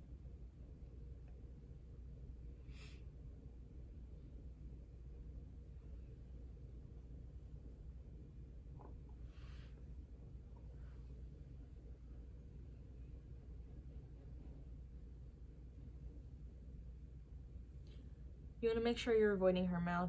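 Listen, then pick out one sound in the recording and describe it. A brush softly strokes across skin.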